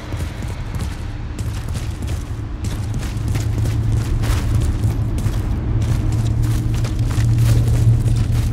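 Short soft clicks tick as menu items are picked.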